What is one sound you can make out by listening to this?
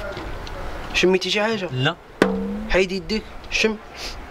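Another young man answers loudly and emphatically.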